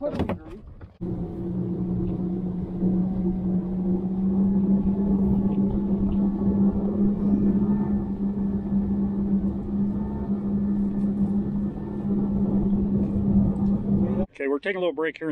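A boat's motor hums steadily as the boat moves across open water.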